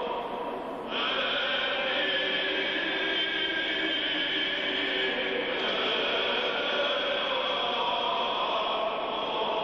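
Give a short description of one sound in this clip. A choir of men chants together in a slow, steady drone, heard through an old, muffled recording.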